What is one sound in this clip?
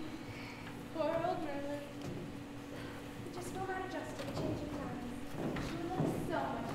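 A young woman speaks with expression on a stage, heard from across a hall.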